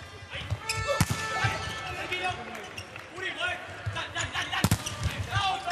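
A volleyball is struck hard with sharp slaps.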